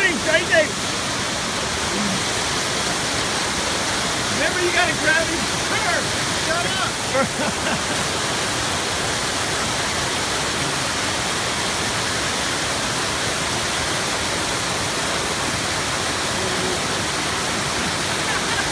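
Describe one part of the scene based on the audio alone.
A rushing stream roars steadily over rocks close by.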